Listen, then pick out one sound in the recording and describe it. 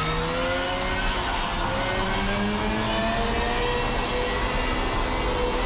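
A racing car engine roars and climbs in pitch as it speeds up.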